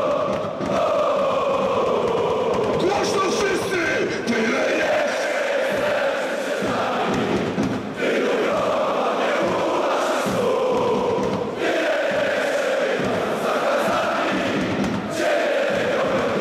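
A large crowd of men and women chants loudly in unison, echoing through a big stadium.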